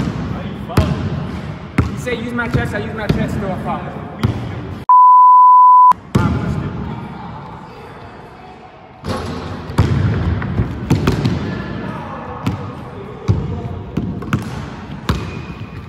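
A basketball bounces repeatedly on a hard floor in a large echoing hall.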